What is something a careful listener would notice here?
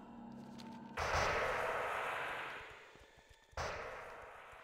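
A magical spell whooshes and shimmers loudly.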